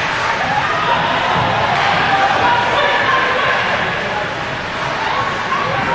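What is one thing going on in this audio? A crowd murmurs and chatters in a large echoing arena.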